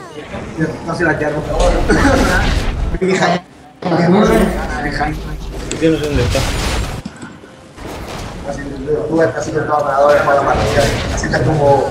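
Blows and magic blasts strike a monster in a video game.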